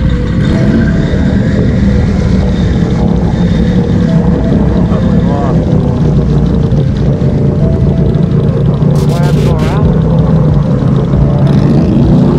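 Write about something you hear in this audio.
An engine roars steadily up close.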